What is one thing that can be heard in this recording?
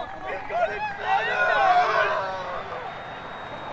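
Young men cheer and shout excitedly outdoors.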